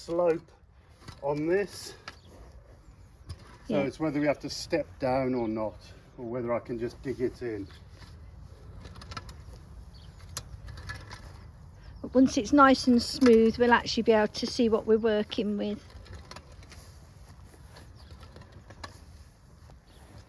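A rake scrapes over loose soil.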